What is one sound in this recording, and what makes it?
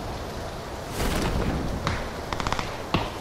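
A parachute snaps open with a burst of flapping cloth.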